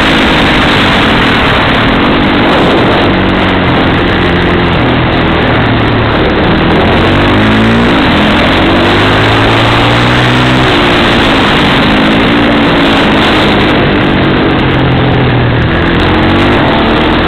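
A small kart engine buzzes loudly close by, its pitch rising and falling as it speeds up and slows down.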